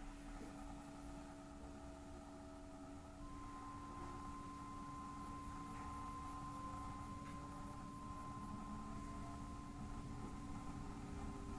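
A train rumbles steadily along the rails.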